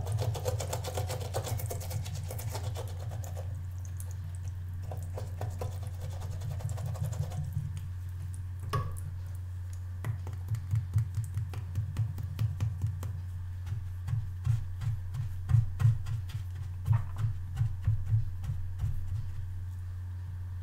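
Brush bristles scrub softly against a rubber pad.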